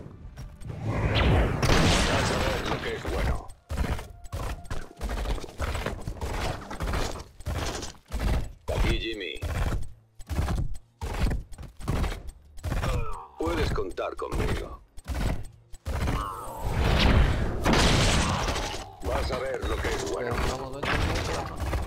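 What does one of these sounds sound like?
Explosions and impacts crash during a game battle.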